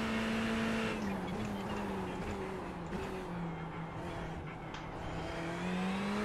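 A racing car engine drops in pitch as the car brakes for a corner.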